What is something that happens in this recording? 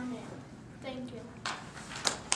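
A child speaks quietly.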